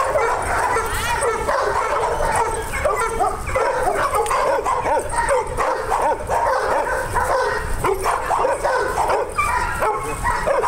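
Several dogs bark and whine nearby.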